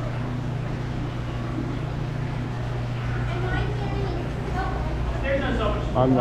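People chatter nearby.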